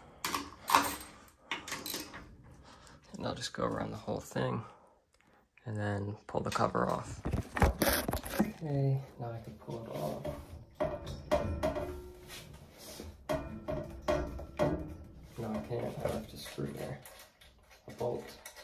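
A hand tool clicks and rattles against metal screws.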